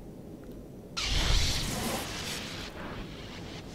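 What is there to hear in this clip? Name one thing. A lightsaber hums and crackles in a fight.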